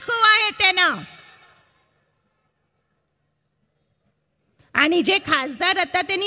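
A woman speaks forcefully through a loudspeaker microphone.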